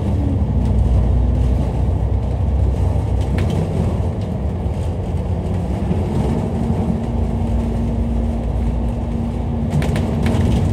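Traffic hums along a busy road.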